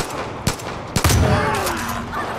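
A shotgun fires a loud blast.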